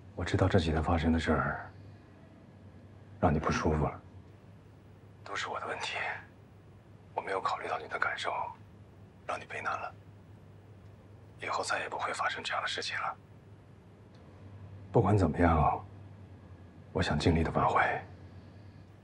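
A man speaks calmly and quietly on a phone.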